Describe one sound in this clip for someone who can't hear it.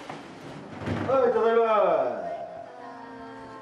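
A middle-aged man calls out a greeting.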